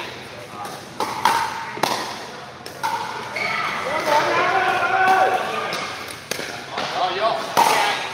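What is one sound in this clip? Paddles sharply pop against a plastic ball in an echoing hall.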